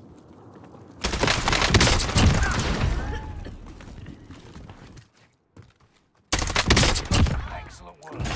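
Loud gunshots from a video game crack and echo.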